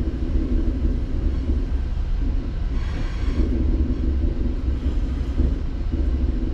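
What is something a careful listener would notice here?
Traffic passes on a nearby road.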